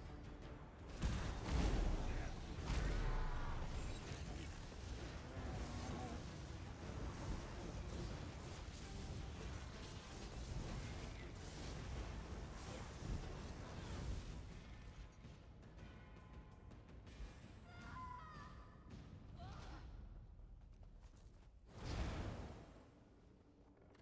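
Magic spells crackle and blast in a fight.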